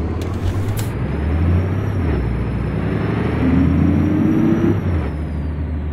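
A truck engine revs up as the truck gathers speed.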